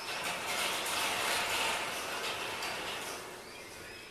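A metal wire shelf rattles as it is moved.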